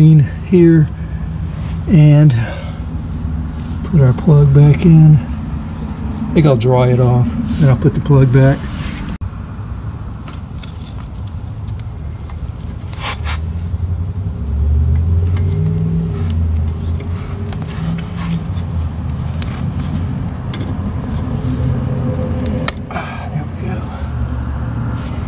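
A hand scrapes and knocks against metal engine parts.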